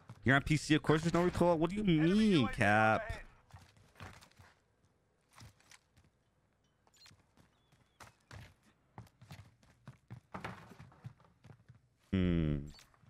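A young man talks with animation into a microphone, up close.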